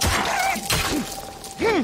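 Heavy blows thud in a struggle.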